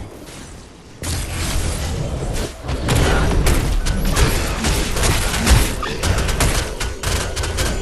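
Crackling electric energy blasts and impacts ring out in a video game fight.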